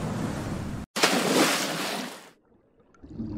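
A diver splashes into water.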